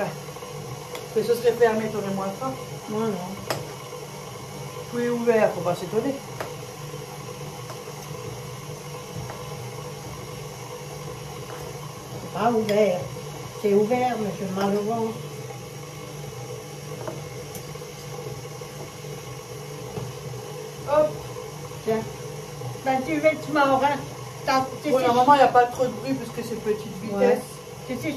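A woman talks nearby in short bursts.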